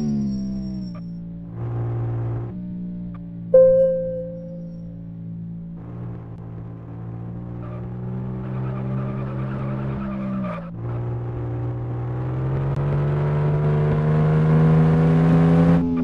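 A small car engine hums steadily and revs higher.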